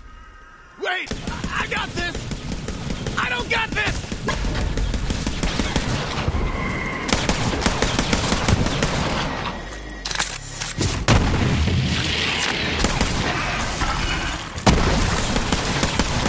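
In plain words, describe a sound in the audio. Guns fire in rapid bursts with loud impacts.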